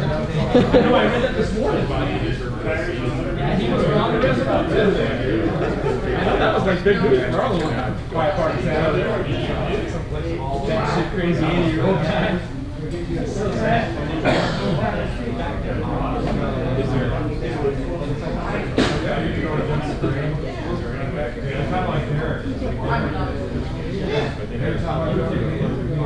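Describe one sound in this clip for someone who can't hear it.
A crowd of men chats at once in an echoing room.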